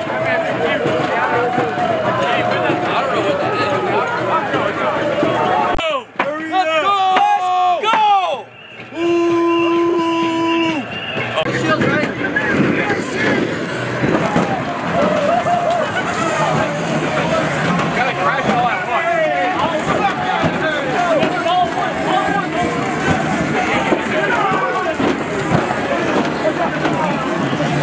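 A crowd of men shouts and jeers outdoors.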